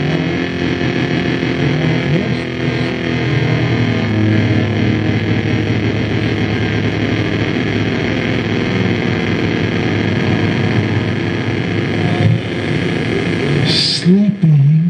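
A synthesizer keyboard plays a dense, droning melody.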